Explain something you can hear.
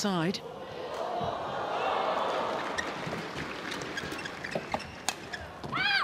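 A crowd cheers and applauds in a large hall.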